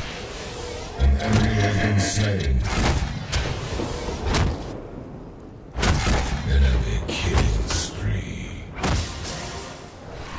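Magic blasts roar and crackle.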